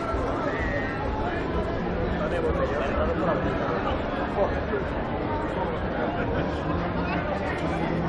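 A crowd of people chatters at a distance.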